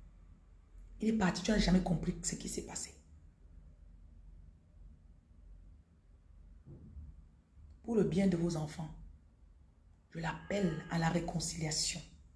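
A young woman speaks calmly and close by, with pauses between phrases.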